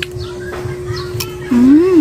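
A young woman chews food with wet smacking sounds.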